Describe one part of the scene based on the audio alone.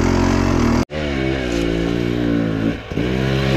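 Motorbikes roar past on a road.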